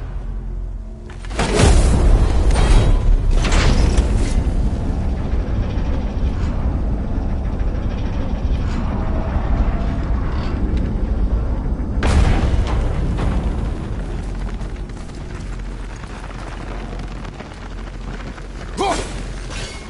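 A deep magical rumble drones and swells.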